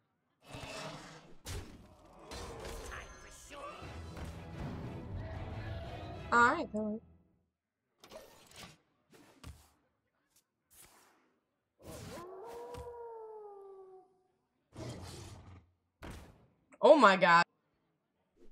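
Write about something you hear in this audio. Game sound effects chime and whoosh as cards are played.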